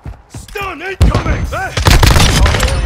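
Gunshots and explosions blast loudly close by.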